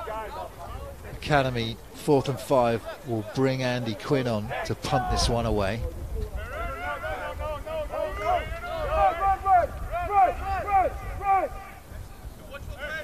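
Young men shout on an open field.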